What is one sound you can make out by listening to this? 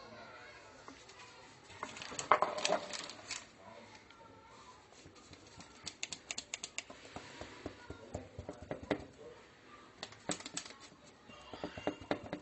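A plastic tool presses softly into soft dough.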